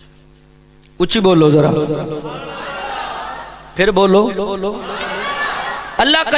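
A man chants loudly and passionately into a microphone, heard through a loudspeaker with echo.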